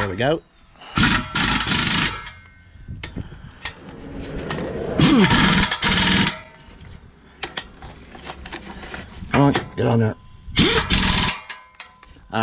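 An air impact wrench rattles loudly in short bursts.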